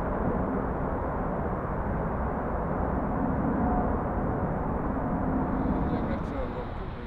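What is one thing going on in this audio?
A jet airliner roars overhead in the distance.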